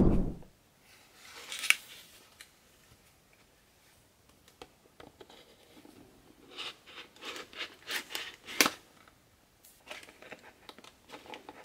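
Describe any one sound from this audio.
Plastic wrap crinkles and crackles as it is handled.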